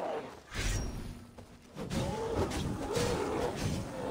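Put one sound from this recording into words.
Fire roars and crackles in a fight.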